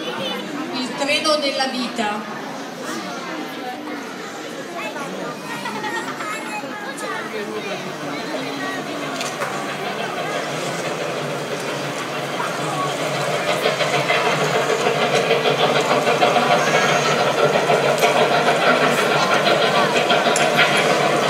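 A large crowd cheers and shouts in a big echoing hall, growing louder.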